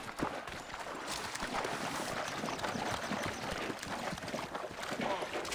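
Water splashes as someone wades through a river.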